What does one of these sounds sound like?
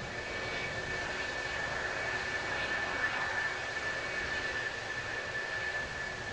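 A jet engine whines loudly and steadily as a fighter jet taxis past.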